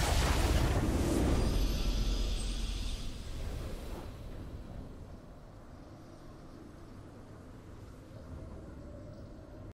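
A triumphant game fanfare swells and then slowly fades away.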